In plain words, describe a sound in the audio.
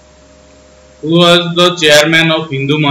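A young man speaks close to a microphone, as if on an online class.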